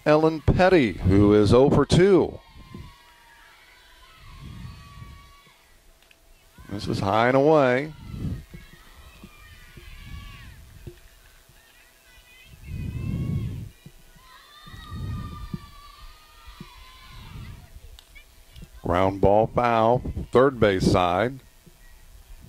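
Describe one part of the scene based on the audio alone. Young women shout loud cheers outdoors.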